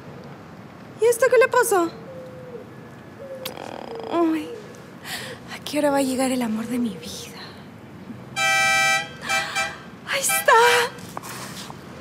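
A young woman speaks excitedly, close by.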